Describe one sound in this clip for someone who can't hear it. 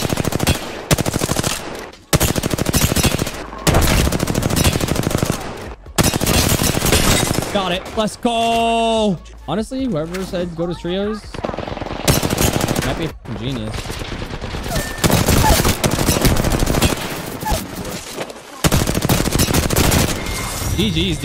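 Rapid gunfire bursts ring out in loud volleys.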